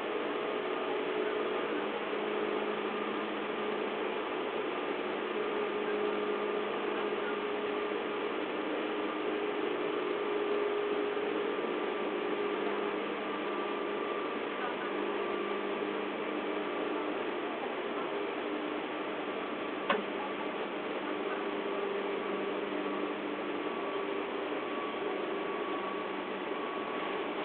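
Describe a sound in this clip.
A train rumbles and hums steadily.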